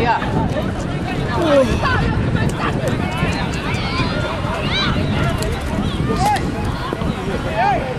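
Young men shout and call out excitedly outdoors.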